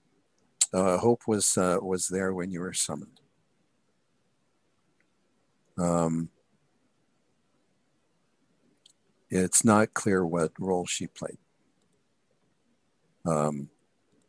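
A man talks calmly over an online call, heard through a microphone.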